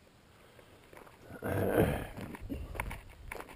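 Tyres crunch and rumble over loose gravel.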